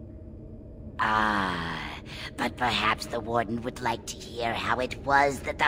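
A woman speaks in a strained, distorted voice, close by.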